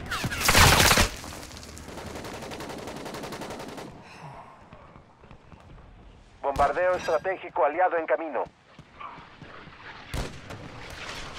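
A sniper rifle fires sharp, loud shots.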